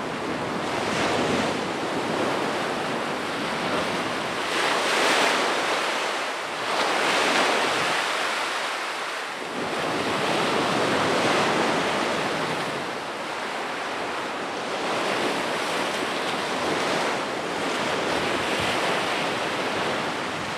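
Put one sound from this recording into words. Waves wash and break over rocks close by, in surges that rise and fall.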